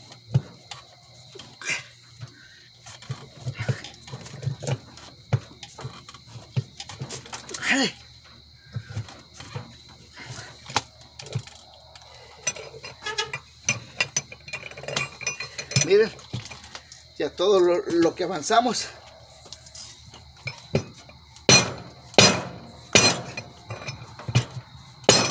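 A metal wrench clicks and clanks against a wheel's lug nuts.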